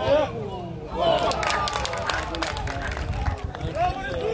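A crowd of young men cheers loudly.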